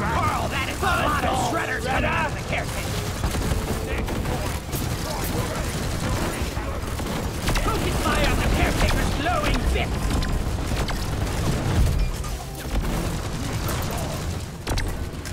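A heavy gun fires rapid, rattling bursts.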